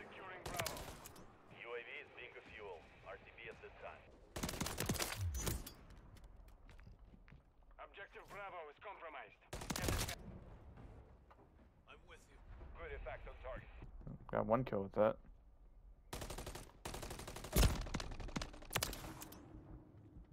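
Automatic gunfire rattles in short, loud bursts.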